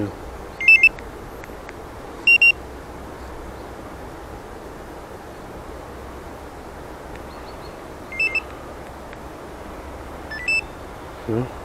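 An electronic key fob beeps sharply in short bursts.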